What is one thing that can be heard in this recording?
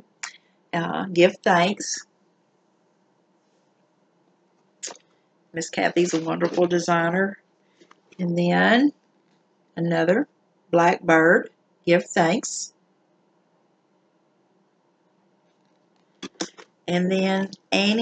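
A middle-aged woman talks calmly and close to a microphone, with pauses.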